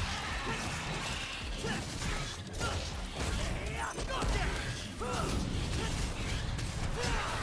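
Blades slash and clang in a fast fight.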